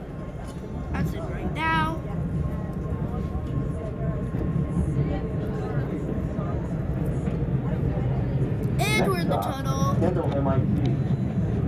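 Train wheels or brakes screech in high, wavering squeals.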